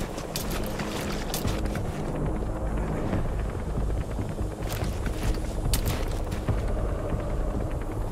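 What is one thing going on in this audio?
Grass rustles as a soldier crawls through it.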